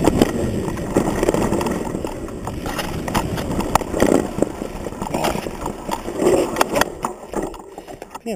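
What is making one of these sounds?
A mountain bike's frame rattles and clatters over bumps.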